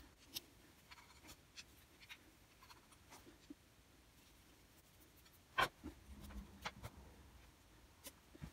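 Small metal parts click and tap as hands handle them.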